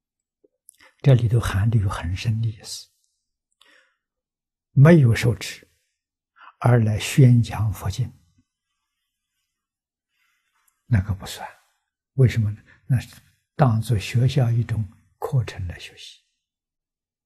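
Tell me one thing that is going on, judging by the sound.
An elderly man speaks calmly and slowly, close by, with pauses.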